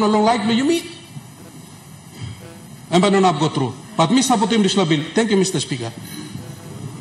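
A man speaks loudly into a microphone in a large hall.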